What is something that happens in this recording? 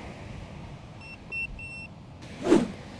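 A remote controller beeps several times in short high tones.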